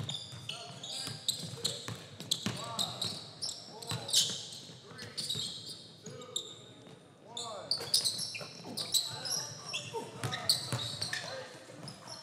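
Sneakers squeak sharply on a hardwood court, echoing in a large hall.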